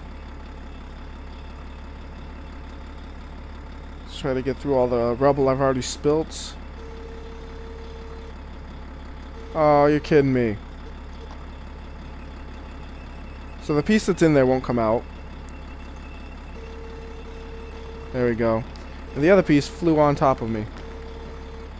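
A wheel loader's diesel engine rumbles steadily.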